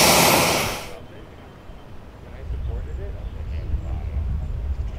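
Truck engines idle with a low rumble.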